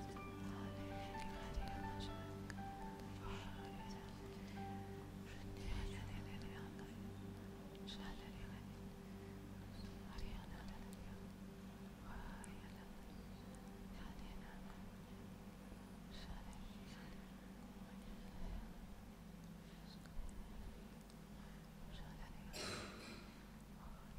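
A keyboard plays soft, sustained chords.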